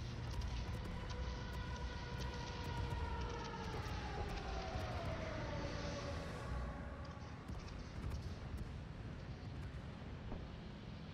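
Explosions boom and rumble continuously.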